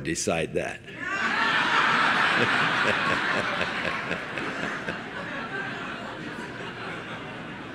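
An audience laughs loudly, then slowly quiets.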